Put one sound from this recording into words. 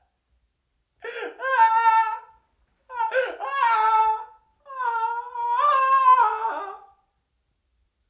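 A young man wails and sobs loudly up close.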